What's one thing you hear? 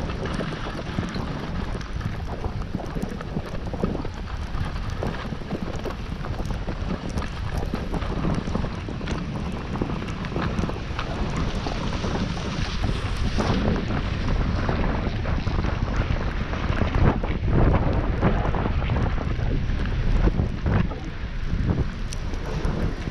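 Skis hiss and scrape over snow at a steady pace.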